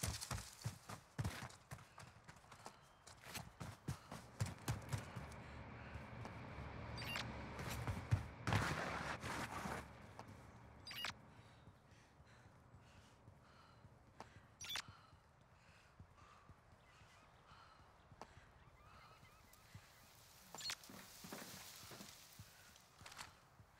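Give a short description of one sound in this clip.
Footsteps crunch on dirt and gravel.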